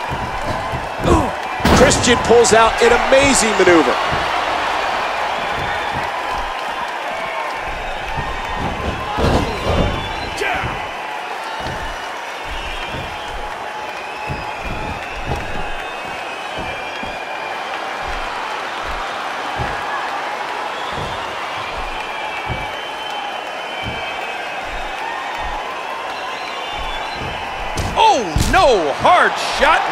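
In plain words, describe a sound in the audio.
Heavy thuds sound as bodies slam onto a wrestling mat.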